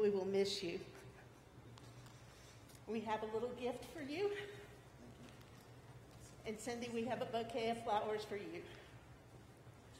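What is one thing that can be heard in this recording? A woman speaks calmly through a microphone in an echoing hall.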